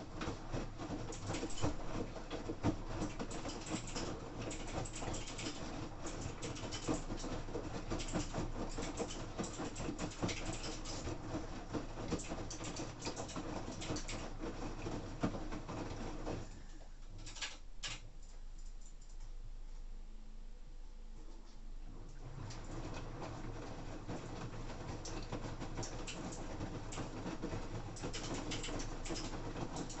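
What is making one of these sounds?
A washing machine drum rumbles as it turns.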